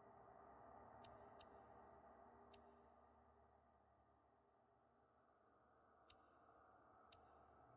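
Short soft menu clicks tick now and then as a selection moves.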